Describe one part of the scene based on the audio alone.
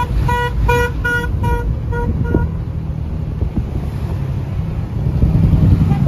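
A car's engine rumbles low and steady while driving.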